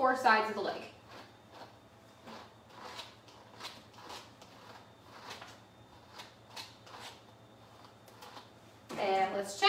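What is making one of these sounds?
Scissors snip through fur.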